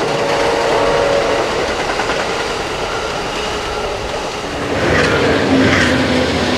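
A passenger train rumbles and clatters along the tracks.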